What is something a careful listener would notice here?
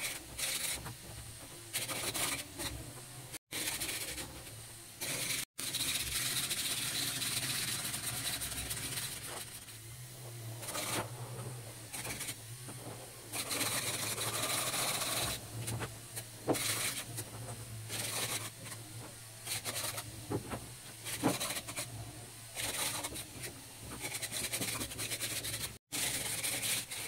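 Plastic tracks clatter and knock against wood.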